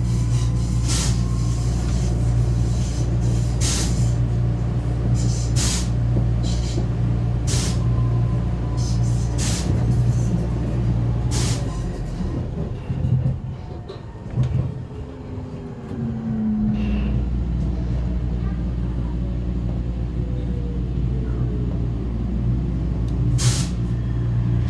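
Train wheels clack sharply over rail joints.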